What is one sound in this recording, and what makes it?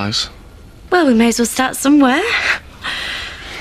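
A young woman speaks and laughs close by.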